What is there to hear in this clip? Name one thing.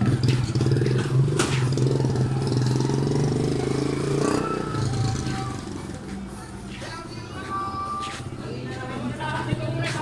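A van engine idles with a low steady hum nearby.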